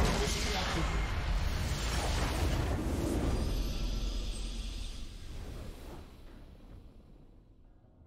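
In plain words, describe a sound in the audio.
A large structure explodes with a deep rumble that slowly fades away.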